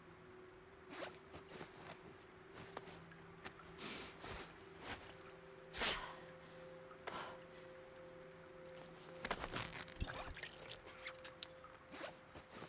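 Small objects clink and rattle as they are picked up.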